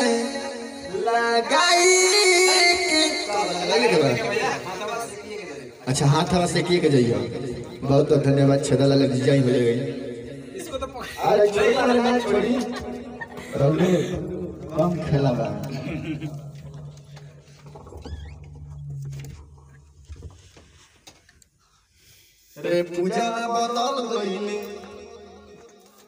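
A young man sings into a microphone, close and slightly echoing.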